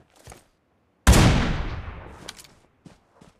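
A single loud rifle shot booms and echoes away.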